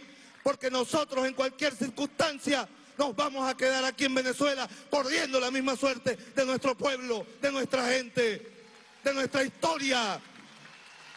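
A man speaks loudly and with passion into a microphone, over loudspeakers.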